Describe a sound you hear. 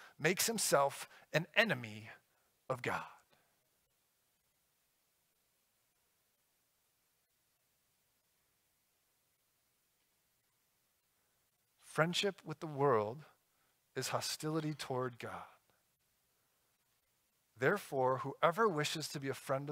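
A man speaks calmly through a microphone in a large room, pausing for long stretches.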